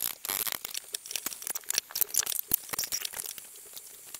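Dishes clatter in a sink.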